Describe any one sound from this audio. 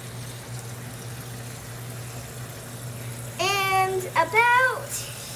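Water runs from a tap into a plastic bag.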